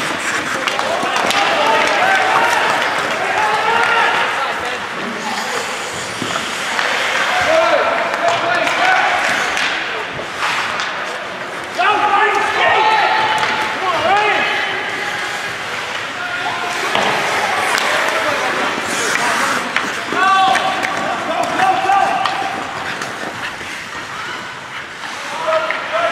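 Skates scrape across ice.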